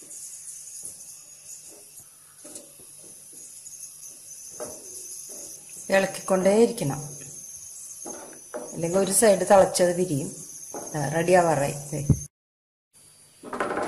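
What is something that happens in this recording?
A wooden spoon stirs a thick liquid in a metal pan, scraping softly.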